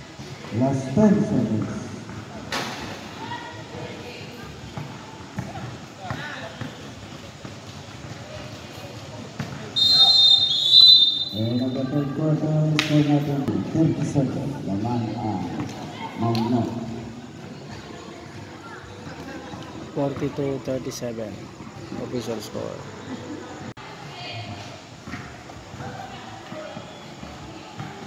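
Men and children talk and shout nearby, echoing in a large hall.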